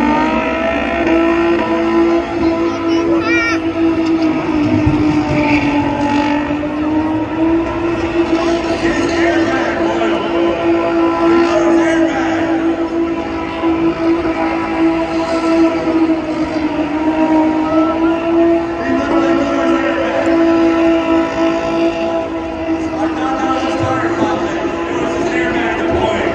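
A car engine roars steadily at high revs in the distance.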